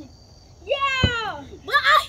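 A basketball bounces on the ground.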